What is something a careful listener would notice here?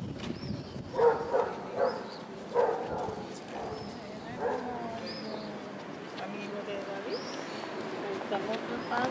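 Two women talk nearby as they walk past.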